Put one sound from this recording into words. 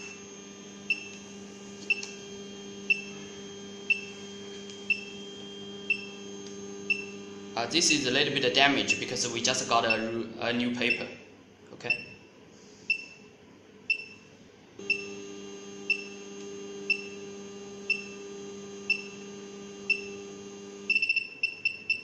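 A printer motor whirs steadily.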